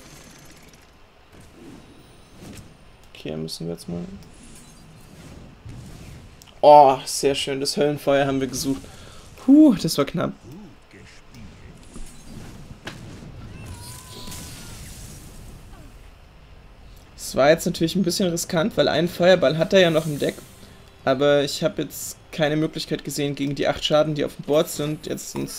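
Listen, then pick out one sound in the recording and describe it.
Card game sound effects chime and whoosh as cards are played.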